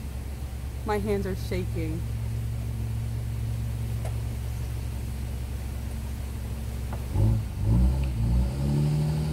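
A car engine hums steadily at low speed.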